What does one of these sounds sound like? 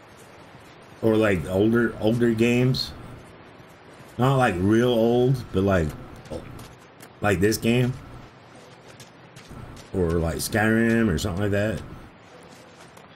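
A middle-aged man talks casually into a microphone, close up.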